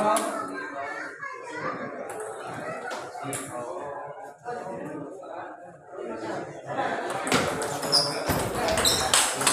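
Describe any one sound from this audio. A table tennis ball clicks back and forth between paddles and the table.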